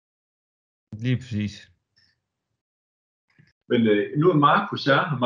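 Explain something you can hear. A man talks calmly, heard through an online call.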